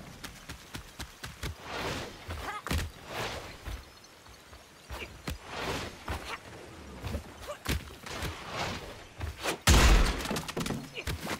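Quick footsteps patter and scrape.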